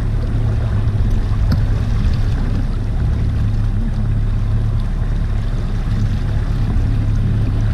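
Small clicks and taps come from a man's hands working with fishing gear.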